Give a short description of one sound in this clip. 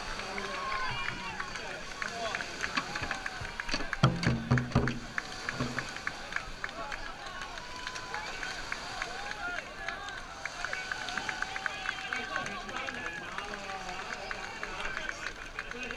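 Paddles splash in water.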